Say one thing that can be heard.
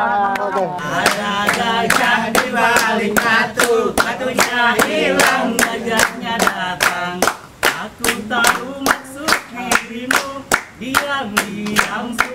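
A group of men clap their hands in a steady rhythm.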